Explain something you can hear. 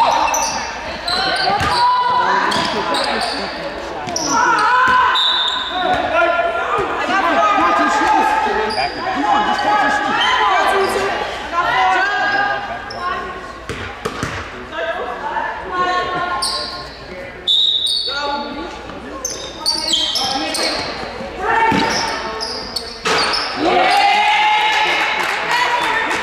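Young women shout and call to each other in a large echoing gym.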